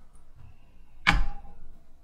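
A metal spoon scrapes against a pan.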